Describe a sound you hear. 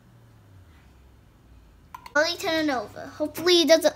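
A metal lid scrapes as it is screwed onto a glass jar.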